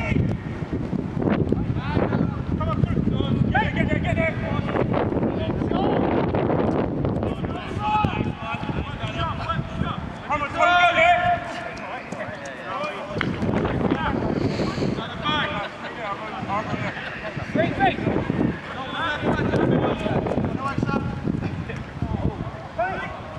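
Young men shout to each other outdoors at a distance.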